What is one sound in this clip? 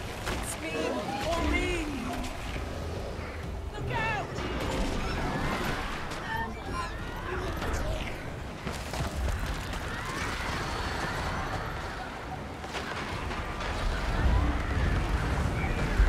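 Spells and weapons clash and burst in a busy game battle.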